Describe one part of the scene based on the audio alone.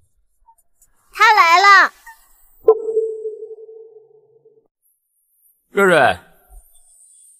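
A young boy speaks, close by.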